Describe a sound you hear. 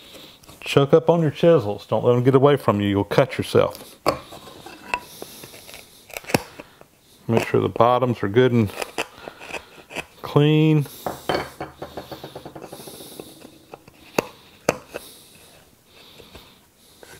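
A metal tool clicks and taps against a wooden handle.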